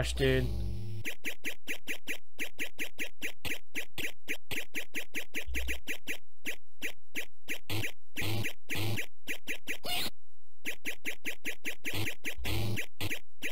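An arcade video game plays fast, rhythmic electronic beeps.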